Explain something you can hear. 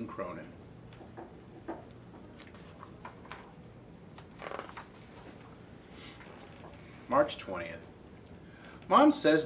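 A man speaks calmly close by, reading aloud.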